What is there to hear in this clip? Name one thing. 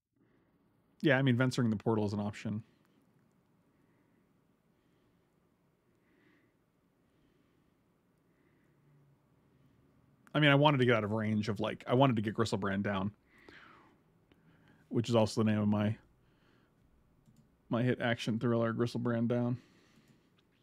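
A middle-aged man speaks calmly and thoughtfully into a close microphone, in short bursts with pauses.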